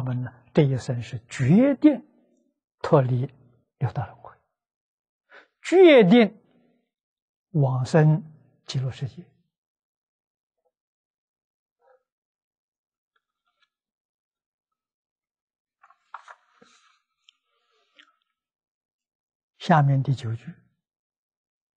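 An elderly man speaks calmly in a lecture, close to a clip-on microphone, with long pauses.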